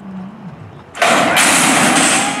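Metal starting gates clang open loudly.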